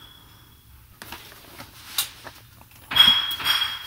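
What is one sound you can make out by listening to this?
Plastic toy boxes rattle as they are handled.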